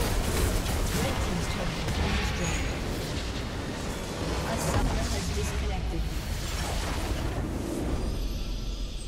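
Game explosions and magic blasts crash loudly in a battle.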